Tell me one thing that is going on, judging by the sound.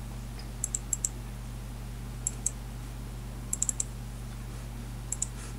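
Short interface clicks sound in quick pairs and bursts.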